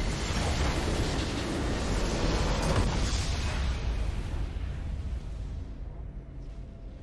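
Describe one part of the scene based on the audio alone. A booming victory fanfare from a video game swells and then fades away.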